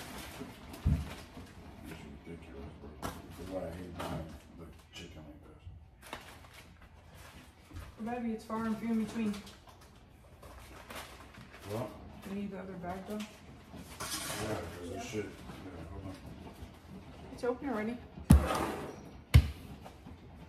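Dishes clatter and knock on a counter.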